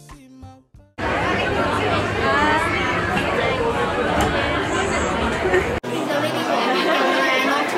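A crowd of people chatters nearby indoors.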